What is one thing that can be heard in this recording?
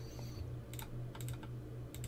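Fire crackles softly.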